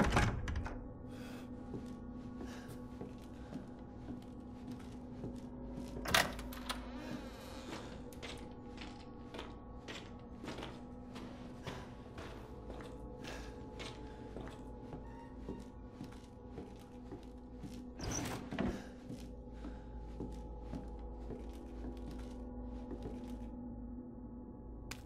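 Footsteps thud slowly on a wooden floor.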